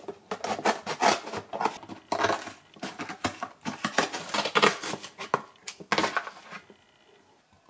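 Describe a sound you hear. A paper carton crinkles and tears as hands pull it open.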